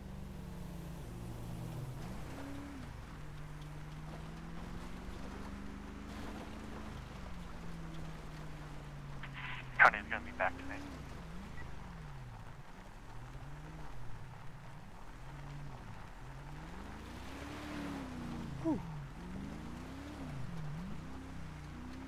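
A vehicle engine hums and shifts in pitch as it drives.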